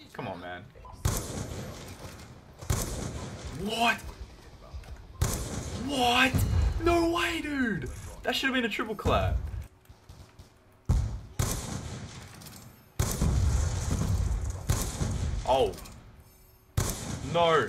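A sniper rifle fires single loud shots, one every few seconds.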